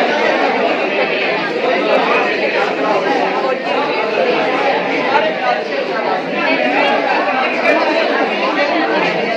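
A young woman speaks calmly, explaining, close by.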